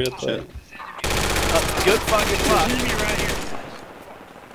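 Automatic gunfire rattles loudly in rapid bursts.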